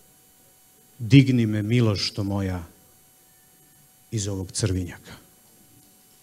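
A man speaks with feeling into a microphone in a large hall.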